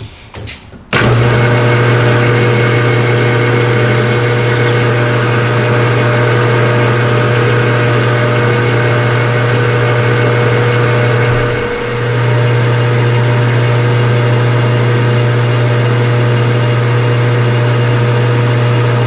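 A lathe motor starts up and hums loudly and steadily.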